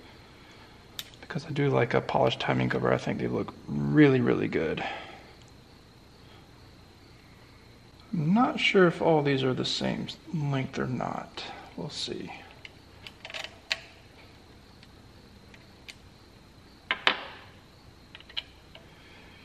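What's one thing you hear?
Metal tools click and clink against an engine.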